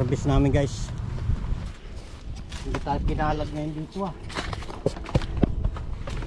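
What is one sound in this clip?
A man talks casually close by.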